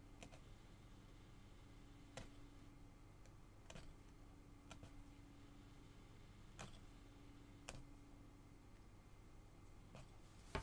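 A punch needle tool pokes through taut fabric with soft, sharp taps.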